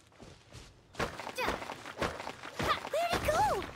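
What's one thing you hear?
A sword swishes sharply through the air.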